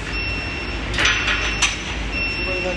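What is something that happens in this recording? Metal parts clank as a hand works a fitting.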